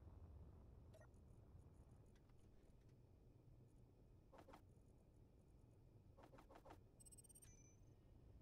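Soft interface clicks sound as a menu is scrolled.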